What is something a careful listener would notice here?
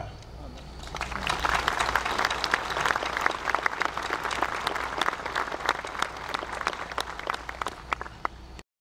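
An audience applauds steadily outdoors.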